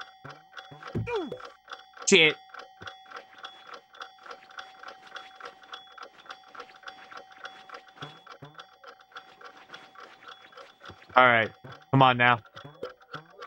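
Short bright game jingles sound now and then.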